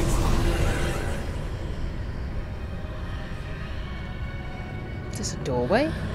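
Fires roar softly.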